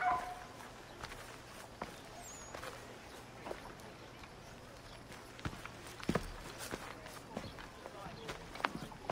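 Footsteps tap on a hard path.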